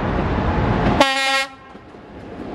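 A train horn sounds loudly.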